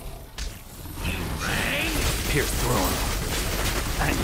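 A huge monster roars and growls loudly.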